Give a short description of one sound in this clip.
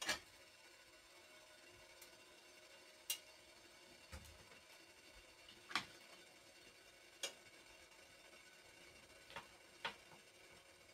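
Small objects click and tap sharply as hands handle them.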